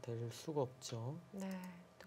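A stone clicks onto a wooden game board.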